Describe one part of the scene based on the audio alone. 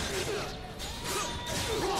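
Swords clash with a sharp metallic ring.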